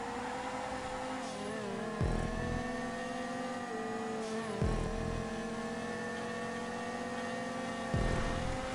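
A car engine revs high and steady, dropping briefly with each gear shift.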